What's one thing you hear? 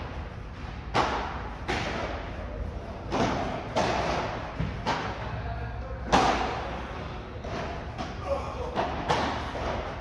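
Paddle rackets strike a ball with sharp pops that echo in a large hall.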